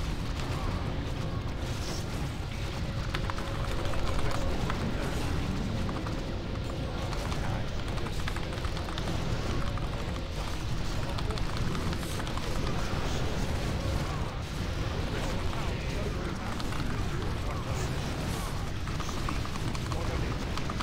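Game battle sounds of clashing weapons and spell effects play steadily.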